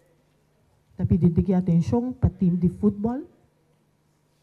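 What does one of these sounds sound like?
A man speaks through a microphone on a loudspeaker.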